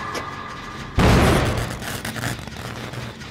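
A generator bangs loudly.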